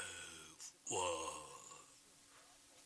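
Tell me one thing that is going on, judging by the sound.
An elderly man speaks slowly and closely.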